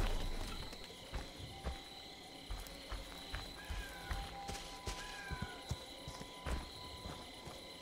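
Footsteps crunch slowly over leaves and dirt.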